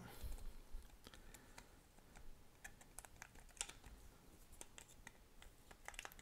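Batteries click and rattle into a small plastic compartment.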